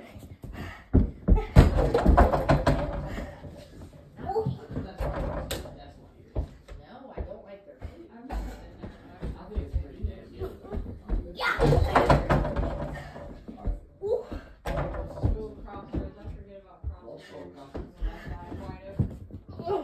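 Bare feet thump on the floor as a boy runs and jumps.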